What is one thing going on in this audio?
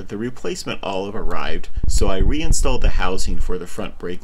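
A small metal hex key clicks against a bolt on a bicycle handlebar.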